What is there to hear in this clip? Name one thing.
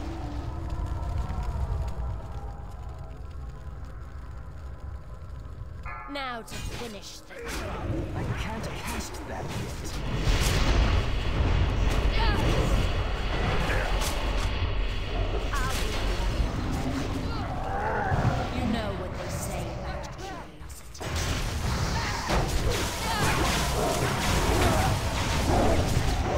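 Magic spells whoosh and crackle amid fighting.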